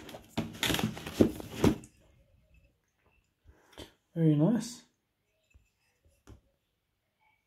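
A metal bottle is handled, with soft rustling and light knocks.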